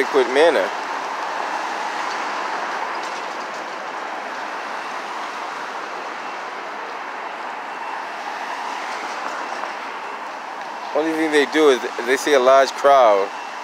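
A police siren wails loudly and close by in quick rising and falling whoops.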